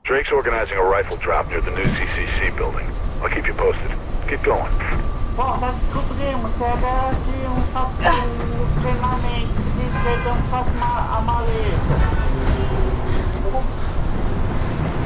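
A young man talks casually into a microphone close by.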